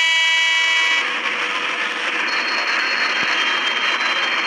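Train brakes hiss loudly.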